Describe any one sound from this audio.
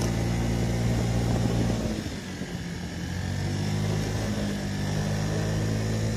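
A scooter engine hums steadily, easing off briefly and then picking up again.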